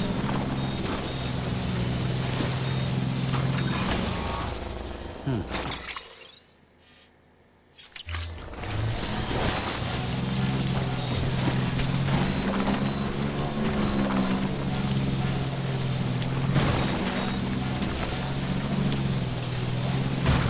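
An engine hums steadily as a vehicle climbs over rough ground.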